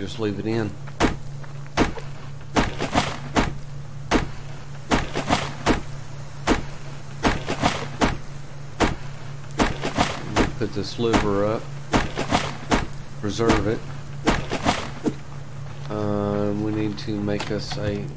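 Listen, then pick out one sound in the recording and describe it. An axe chops into wood with sharp, regular blows.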